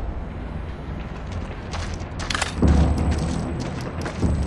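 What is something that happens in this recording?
Soft footsteps crunch on snowy ground.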